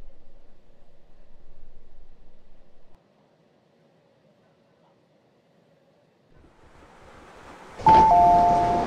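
A train rolls slowly and brakes to a stop.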